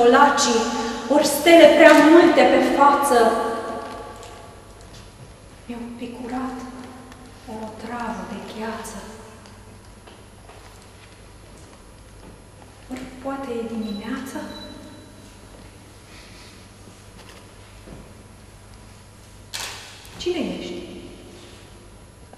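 An adult woman recites poetry expressively into a microphone, with pauses between phrases.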